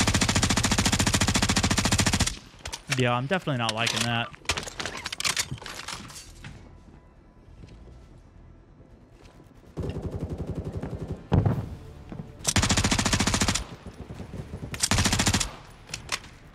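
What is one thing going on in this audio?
A light machine gun fires bursts in a video game.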